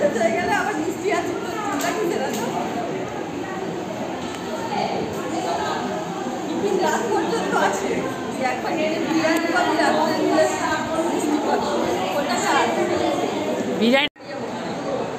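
Middle-aged women talk and laugh with animation close by.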